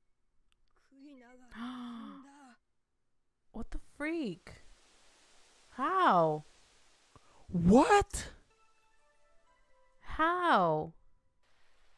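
A young man exclaims in surprise close to a microphone.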